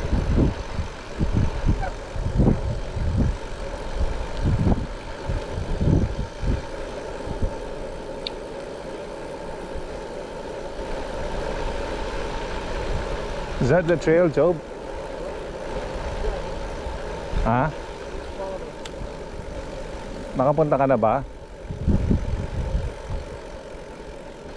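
Wind buffets and rumbles in gusts while riding outdoors.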